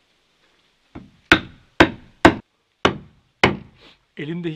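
An axe strikes wood in sharp, regular chops.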